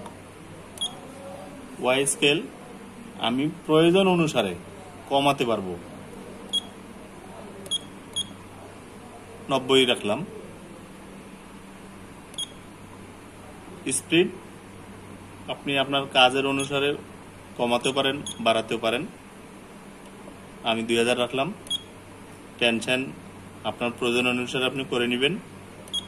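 Buttons on a control panel beep softly as a finger presses them.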